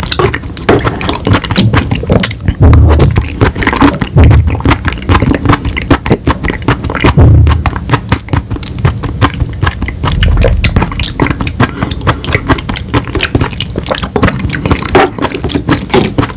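A plastic spoon clicks against a plastic cup.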